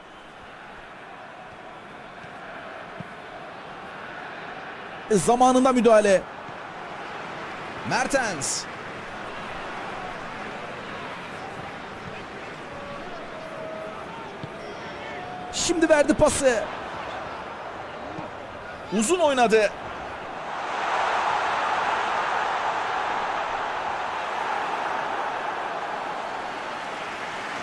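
A large stadium crowd murmurs steadily and then swells into a loud roar.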